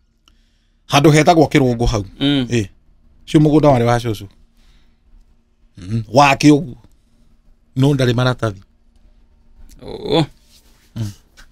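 A middle-aged man speaks with animation close to a microphone, in short bursts with pauses.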